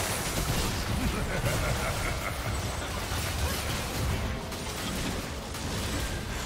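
Game spell effects crackle and burst during a battle.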